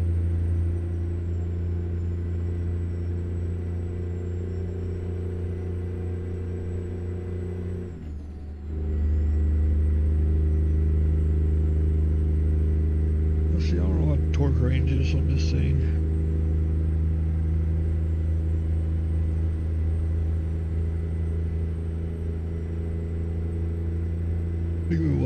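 A truck engine drones steadily, dropping briefly as the gears shift.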